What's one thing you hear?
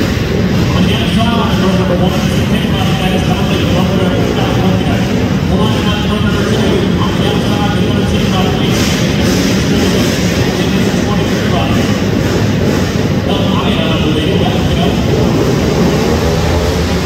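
Motorcycle engines idle and rev loudly in a large echoing hall.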